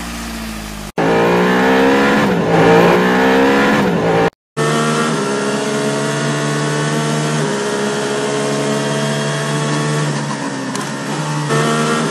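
A racing car engine runs.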